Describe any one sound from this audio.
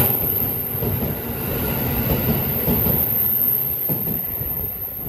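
A train rumbles past close by, its wheels clattering on the rails.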